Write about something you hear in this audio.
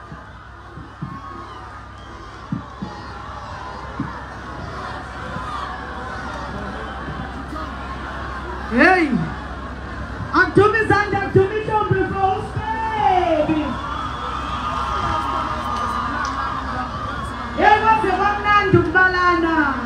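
A large crowd cheers and murmurs in the distance, outdoors.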